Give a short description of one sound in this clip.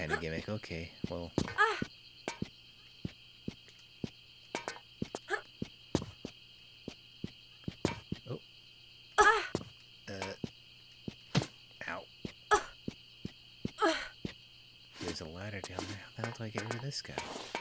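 Footsteps clatter quickly on a hard floor.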